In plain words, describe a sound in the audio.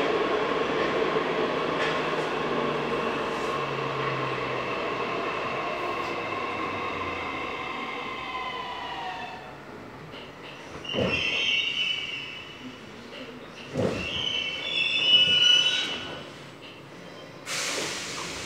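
A train car rattles and rumbles along the tracks.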